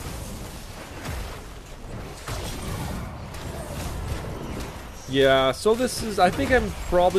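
Magic spells crackle and explode in a game battle.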